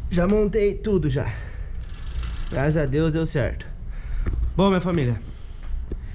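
A bicycle freewheel ticks as the pedals are spun.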